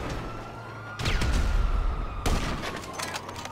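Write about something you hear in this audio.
A rifle fires a loud, booming shot.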